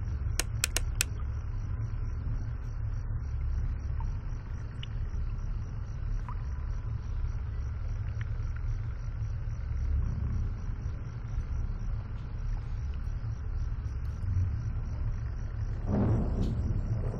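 A fan hums steadily and low.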